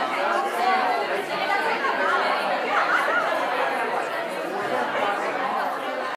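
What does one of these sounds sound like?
Many men and women chat at once in a room with some echo.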